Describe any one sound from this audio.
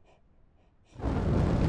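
Fire roars loudly.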